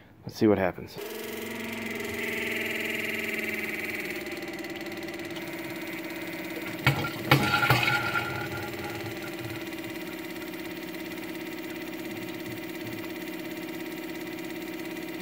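An electric fuel pump hums steadily.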